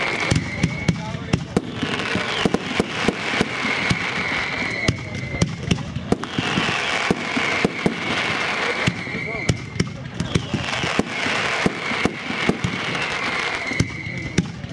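Fireworks crackle and fizz as sparks burst.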